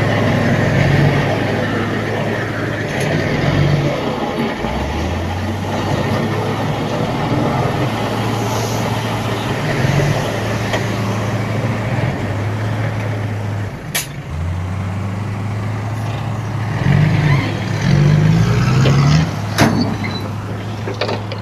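Soil and rocks slide and pour from a tipping truck bed.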